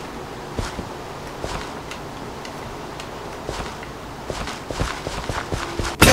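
A man speaks in short bursts close to a microphone.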